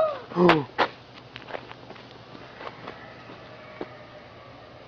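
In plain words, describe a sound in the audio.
A small child's footsteps patter on a paved path.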